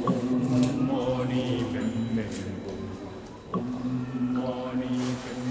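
An elderly man blows a horn in long, steady low notes, with a short pause between them.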